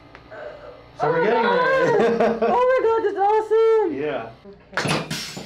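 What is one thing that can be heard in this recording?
A young woman exclaims with excitement nearby.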